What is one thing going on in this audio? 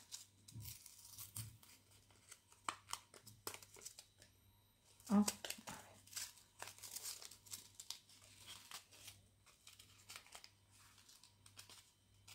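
Cardboard packaging crinkles and rustles as hands open it.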